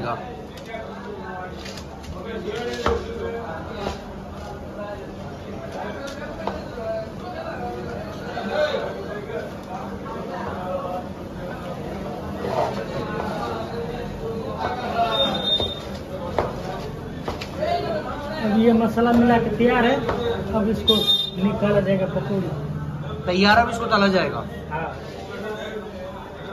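A hand mixes and squishes a crumbly mixture in a metal bowl.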